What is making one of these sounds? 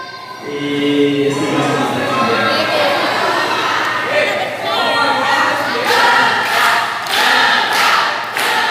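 A man speaks into a microphone through a loudspeaker in an echoing hall.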